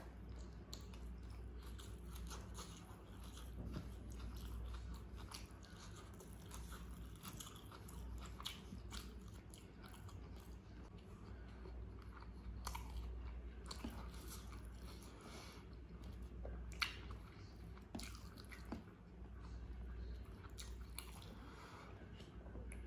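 Fingers squish and rustle through soft rice.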